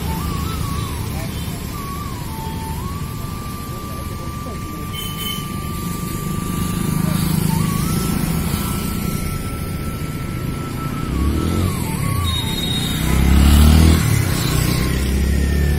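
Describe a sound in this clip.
Traffic rumbles steadily on a road nearby.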